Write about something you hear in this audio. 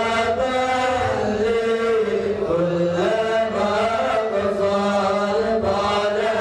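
A man chants a prayer in a sustained, melodic voice through a microphone and loudspeakers.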